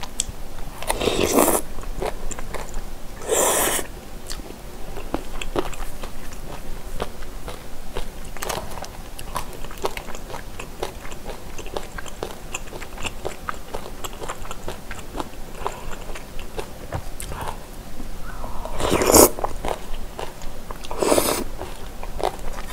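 A young woman slurps noodles loudly, close to a microphone.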